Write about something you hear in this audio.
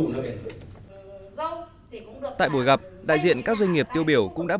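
A middle-aged woman speaks through a microphone.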